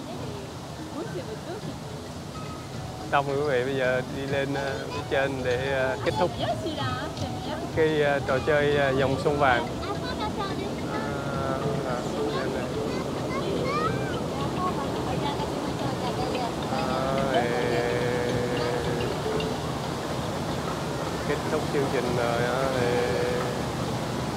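Water rushes and splashes steadily.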